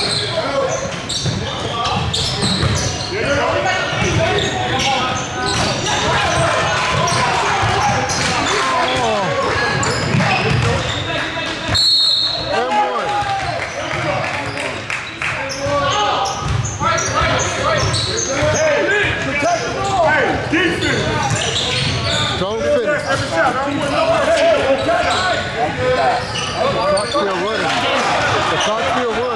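Many people chatter and call out in a large echoing hall.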